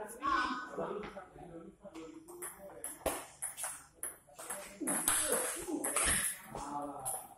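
A table tennis ball clicks back and forth on a table and paddles.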